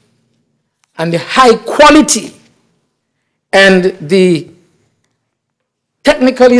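An older man speaks formally into a microphone, pausing between phrases.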